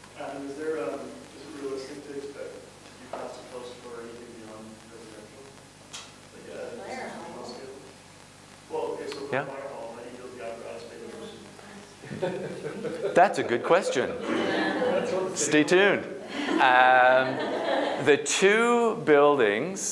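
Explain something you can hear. A middle-aged man speaks calmly to a small group, growing more animated.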